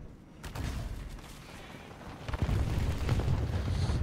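Branches crack and snap as a vehicle crashes through a tree.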